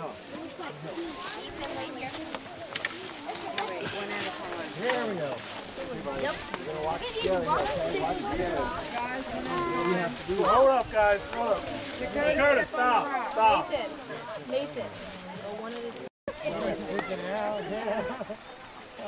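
Children and adults chatter close by, outdoors.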